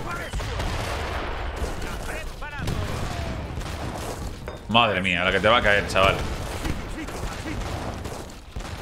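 Cannons boom again and again from ships firing.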